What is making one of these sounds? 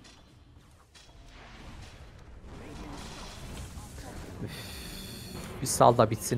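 Game spells whoosh and crackle in a busy battle.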